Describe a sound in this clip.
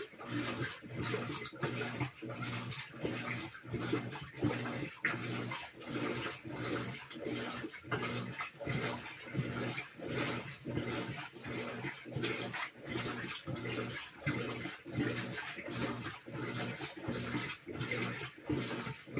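A washing machine motor hums with each agitation stroke.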